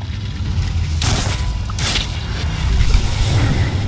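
A roaring blast of fire bursts out.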